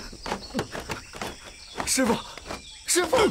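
A young man shouts in alarm.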